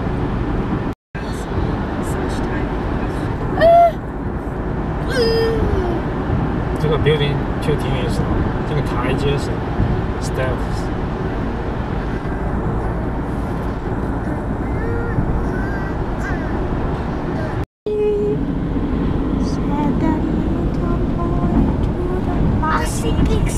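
Road noise rumbles steadily inside a car driving on a highway.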